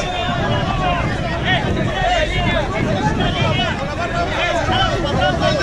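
Footsteps of a marching crowd shuffle on pavement.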